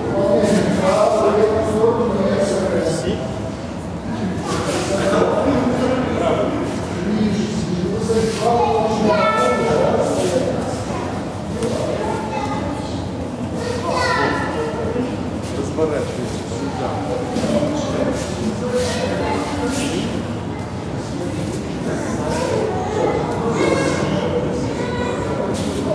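A man speaks loudly and firmly in a large echoing hall.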